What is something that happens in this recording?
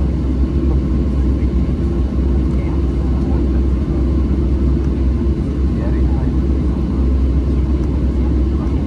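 Jet engines roar steadily, heard from inside an aircraft cabin.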